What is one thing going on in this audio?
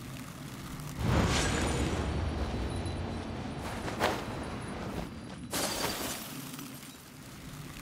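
A magic portal whooshes open with a deep swirling rumble.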